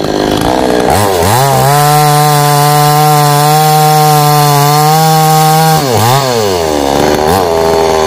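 A chainsaw cuts into a tree trunk.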